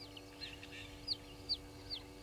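Antelope horns clack together a few times.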